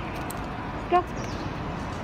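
A dog gives a short, high yelp close by.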